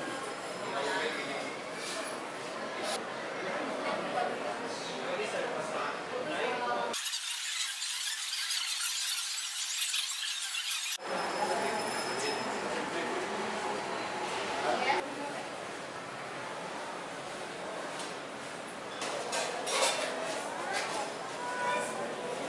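A busy indoor crowd murmurs in the background.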